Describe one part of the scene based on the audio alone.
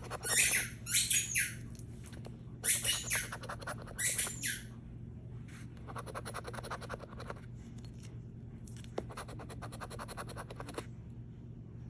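A coin scratches rapidly across a paper ticket.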